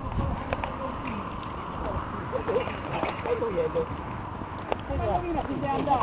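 Men talk outdoors among a group of cyclists.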